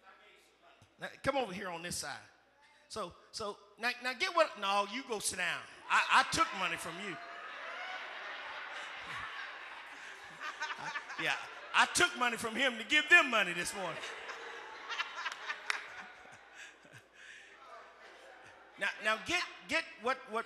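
A man speaks with animation into a microphone over loudspeakers in a large echoing hall.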